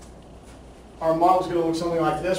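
A middle-aged man speaks clearly in a room with some echo.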